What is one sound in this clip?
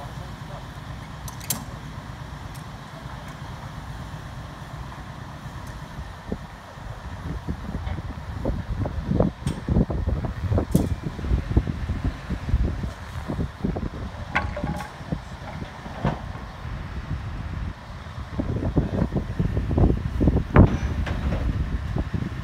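Wind blusters outdoors.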